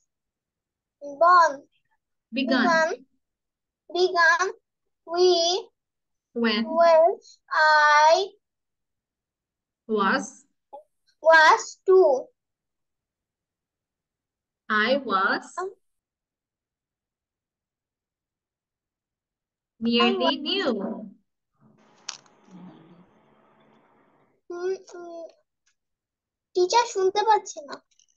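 A young child recites a poem slowly, phrase by phrase, through an online call.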